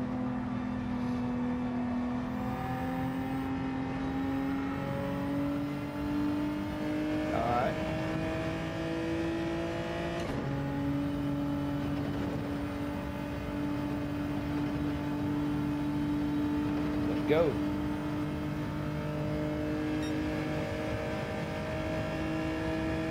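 A racing car engine roars steadily, its pitch slowly climbing as it speeds up.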